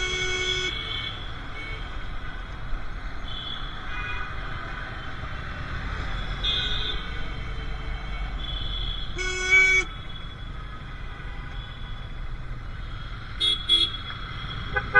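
A vehicle horn honks briefly.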